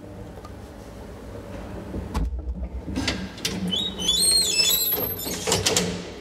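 A metal folding gate rattles and squeaks as it is pulled.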